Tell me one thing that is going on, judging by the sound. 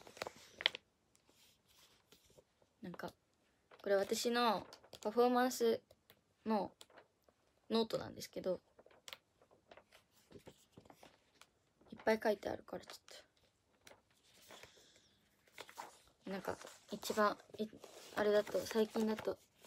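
Pages of a booklet rustle as they are turned.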